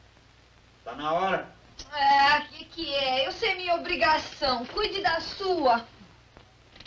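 A young woman answers sleepily and with animation.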